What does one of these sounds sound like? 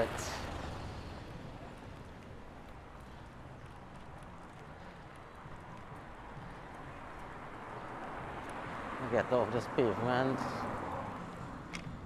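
A bicycle's knobby tyre rolls over pavement.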